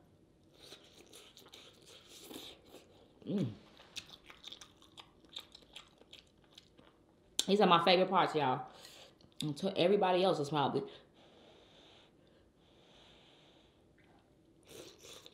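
A woman chews and slurps food close to a microphone.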